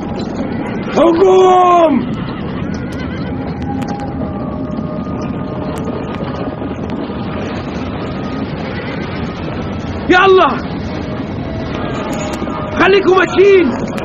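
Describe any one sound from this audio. Horses whinny loudly.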